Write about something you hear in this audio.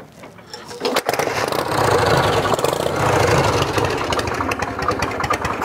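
A motorcycle engine idles with a loud rumbling roar.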